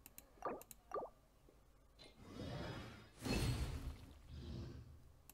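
Electronic menu tones chime and whoosh.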